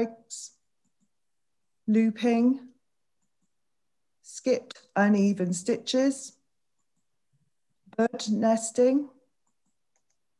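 A woman speaks calmly into a microphone over an online call, in short phrases with pauses.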